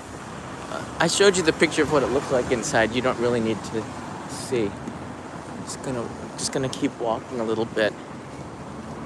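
A man talks calmly, close to the microphone.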